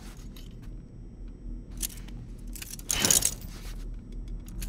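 A strap buckle clicks as it is fastened.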